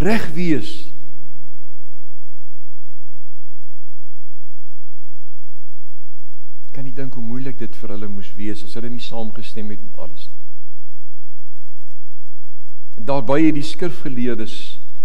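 A middle-aged man speaks calmly through a microphone, with long pauses.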